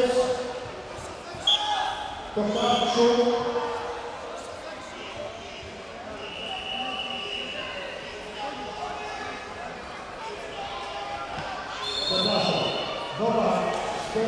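A crowd of spectators chatters in a large echoing hall.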